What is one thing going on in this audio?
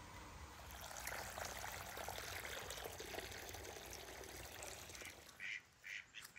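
Water from a hose splashes into a bucket of water.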